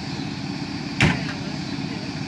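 A truck door slams shut.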